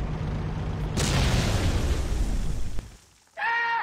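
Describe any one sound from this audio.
A loud explosion bursts and roars.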